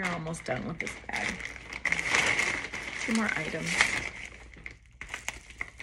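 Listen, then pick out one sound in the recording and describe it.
Fabric rustles as a bag is handled.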